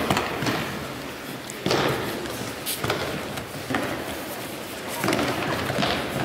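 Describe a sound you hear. Bare feet shuffle and thump on soft mats in a large echoing hall.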